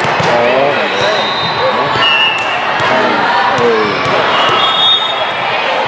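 Young women cheer and shout with animation in a large echoing hall.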